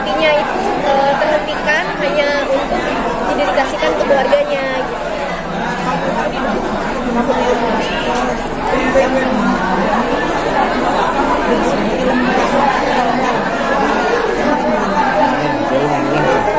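A young woman speaks calmly and cheerfully into microphones close by.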